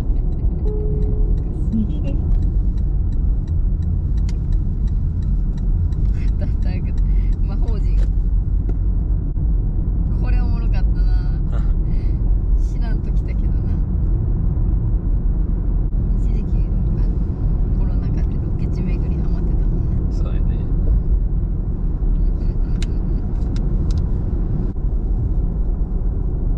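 A car engine hums steadily with road rumble from inside a moving car.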